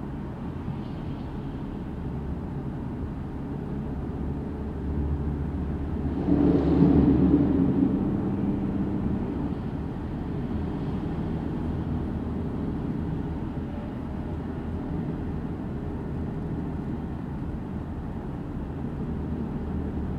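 Traffic rumbles steadily along a motorway, swelling briefly as a vehicle passes close.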